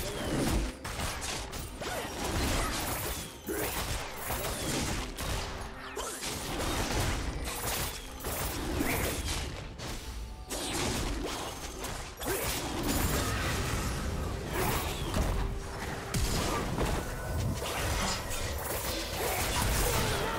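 Game characters clash with magical spell effects and hits.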